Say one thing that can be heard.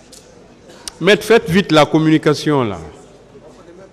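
A man speaks loudly and forcefully into a microphone, close by.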